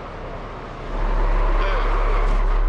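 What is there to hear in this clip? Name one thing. A car crashes with a loud roaring scrape.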